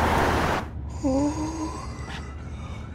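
A young man yawns loudly.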